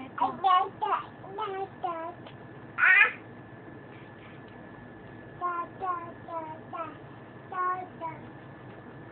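A toddler babbles and squeals close by.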